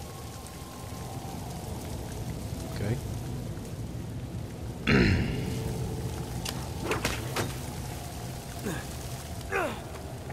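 Footsteps scuff on rock.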